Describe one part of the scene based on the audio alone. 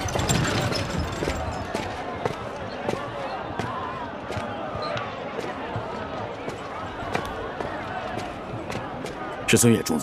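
Boots march in step on hard ground.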